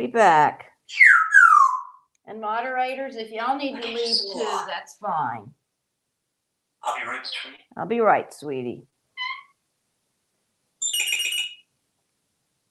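A parrot whistles sharply.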